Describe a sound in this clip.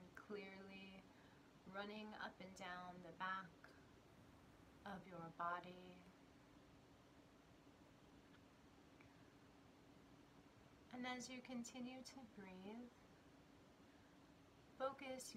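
A woman speaks calmly and softly close to a microphone, with pauses.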